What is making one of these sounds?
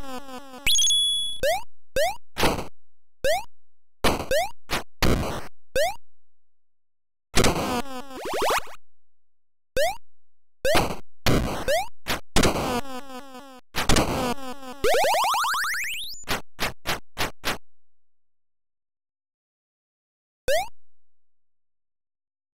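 Retro video game sound effects chirp and zap in short bursts.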